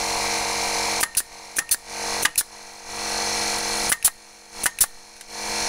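A nail gun fires nails into wood in quick sharp pairs of bangs.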